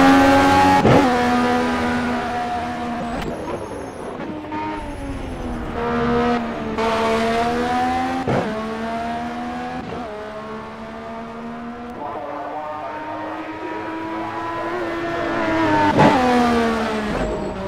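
A racing car engine roars by from a distance, rising and falling as the car passes.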